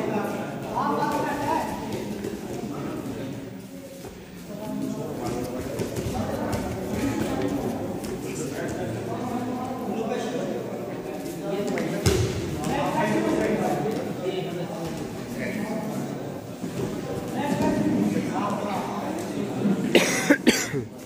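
Wrestlers' feet shuffle and thud on a padded mat.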